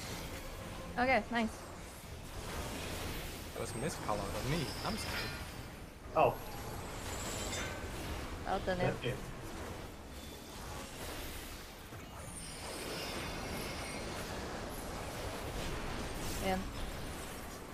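A young woman talks into a close microphone with animation.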